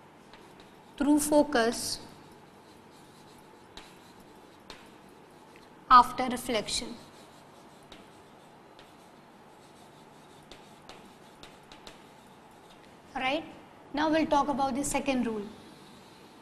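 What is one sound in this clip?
A woman speaks calmly in short phrases, as if teaching.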